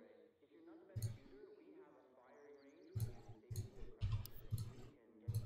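A game menu clicks softly as items are scrolled through.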